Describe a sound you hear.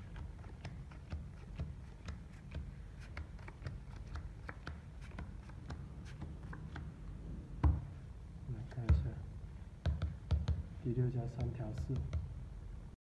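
Playing cards slide and tap against one another.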